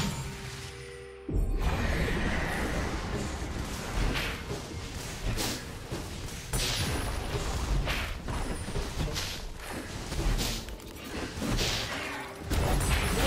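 Magic spells whoosh and blast in quick bursts.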